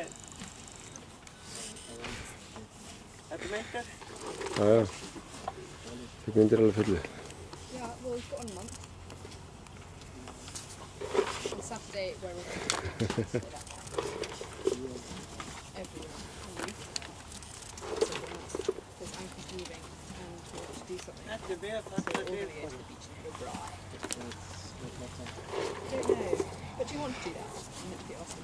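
A young man talks calmly nearby, outdoors.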